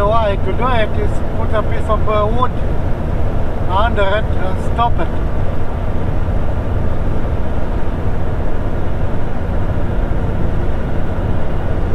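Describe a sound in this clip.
A car engine hums and tyres roar steadily on a paved road.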